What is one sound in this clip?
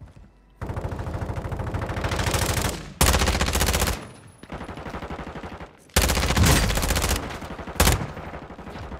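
An automatic rifle fires rapid, loud bursts at close range.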